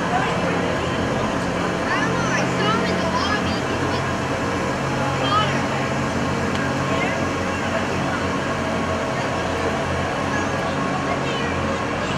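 Ice resurfacing machines hum as they drive slowly across the ice.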